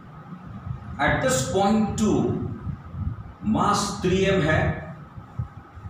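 A man speaks, explaining as if teaching.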